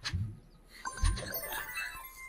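A springy pad boings as a cartoon fox bounces on it.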